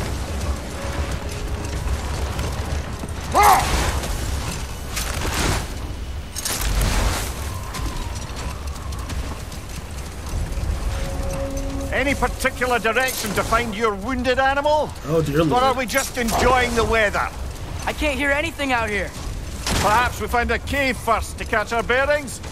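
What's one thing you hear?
A sled slides and scrapes over snow.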